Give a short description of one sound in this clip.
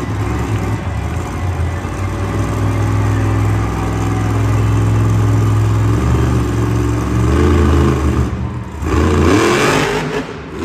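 A monster truck engine roars loudly in a large echoing arena.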